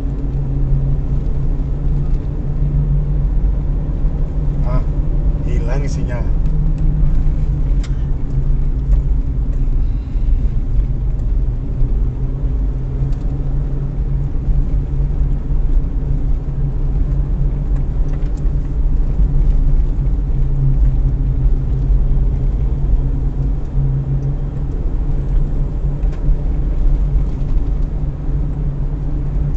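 Tyres rumble over a narrow road.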